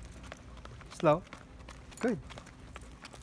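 A dog lets out two short, high yelping barks close by.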